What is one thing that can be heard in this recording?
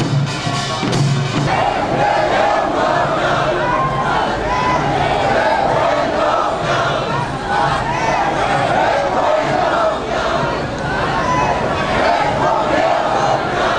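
A large crowd of marchers chants and shouts outdoors.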